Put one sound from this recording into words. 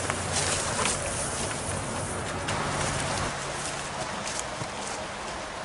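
Footsteps crunch on twigs and leaves.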